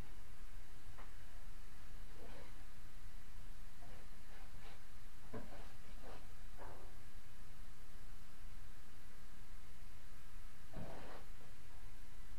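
Light knocks and scrapes come from someone working nearby.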